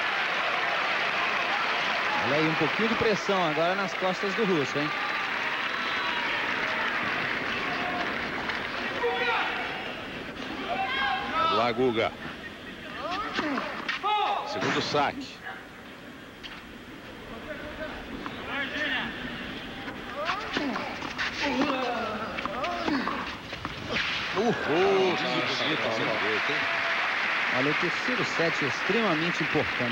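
A crowd applauds and cheers in a large stadium.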